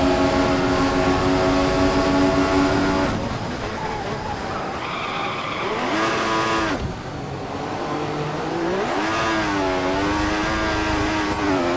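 A racing car engine screams at high revs, drops in pitch as it slows, then climbs again as it speeds up.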